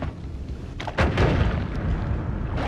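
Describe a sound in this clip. An explosion booms and crackles.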